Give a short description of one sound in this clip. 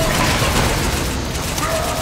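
Energy weapons fire in short bursts.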